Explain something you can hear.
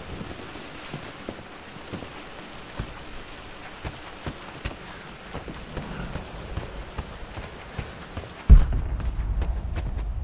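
Footsteps tap on a wooden floor at a quick walk.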